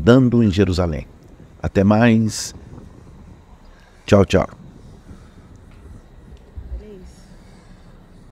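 Small waves lap gently close by.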